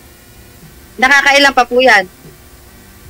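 A middle-aged woman talks over an online call.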